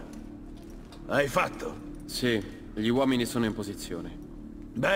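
A young man answers calmly.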